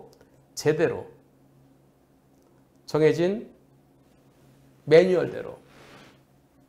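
A middle-aged man speaks calmly into a close microphone in short phrases.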